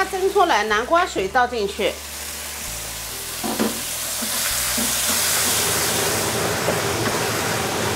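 Liquid is poured into a hot pan and hisses loudly.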